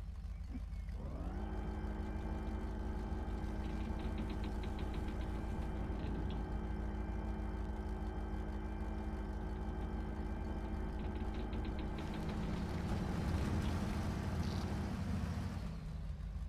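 A heavy truck engine revs up and holds a steady high drone.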